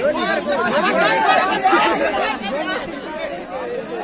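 A crowd of young men cheers and shouts outdoors.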